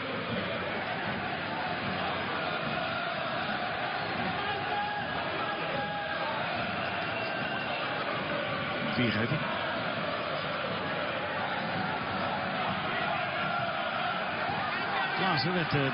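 A large crowd murmurs and chants steadily outdoors.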